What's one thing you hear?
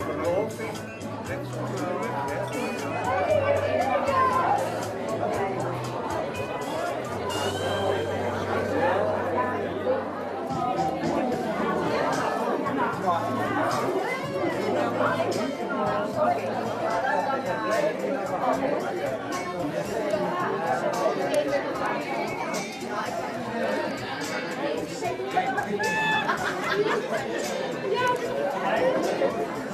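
A crowd of men and women chatter and laugh in a busy room.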